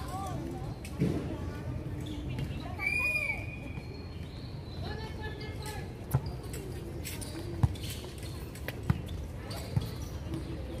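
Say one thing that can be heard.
Hands strike a volleyball with sharp slaps.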